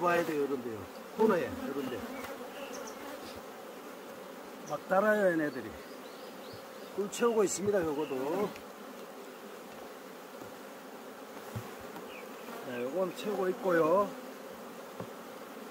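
Bees buzz steadily around the hives.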